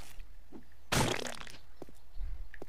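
A body bursts with a wet splatter.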